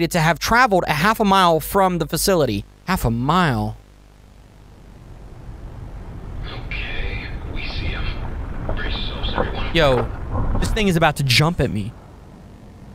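A young man speaks calmly and close into a microphone, reading out.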